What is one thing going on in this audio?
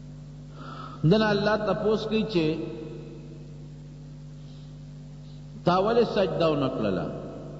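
An elderly man preaches with feeling into a microphone.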